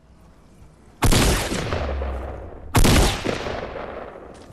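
A gun fires two loud shots that ring out and fade.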